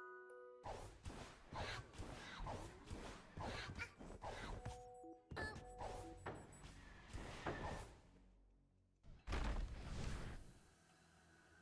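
Video game sound effects play in quick bursts.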